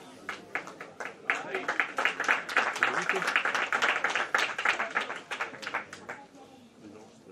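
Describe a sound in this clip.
Spectators clap their hands.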